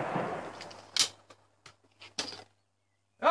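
A shotgun snaps open with a metallic click.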